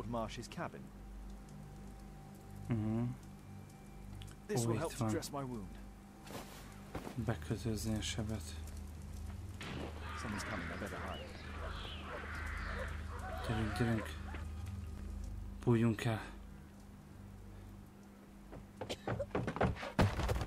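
A young man speaks casually into a headset microphone.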